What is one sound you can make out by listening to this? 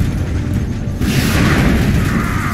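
An explosion bursts with a deep boom.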